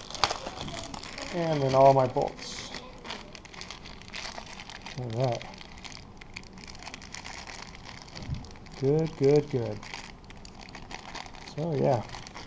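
A plastic bag rustles as small parts are handled.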